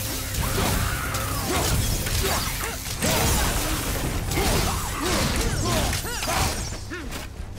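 Electricity crackles and zaps in bursts.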